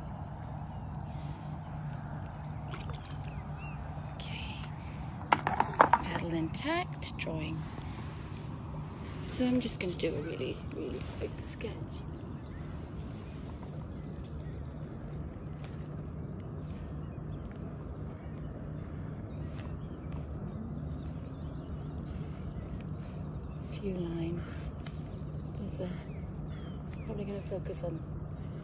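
Water laps gently against a paddleboard.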